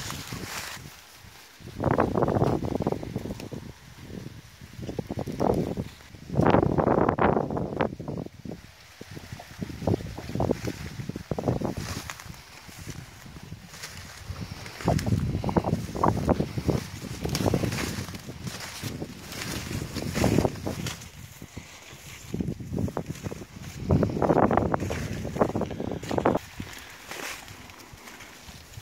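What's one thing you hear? Dry corn leaves rustle and crackle as a dog runs through them.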